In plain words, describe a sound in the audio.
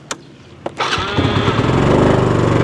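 A motor scooter engine starts and idles with a steady rumble.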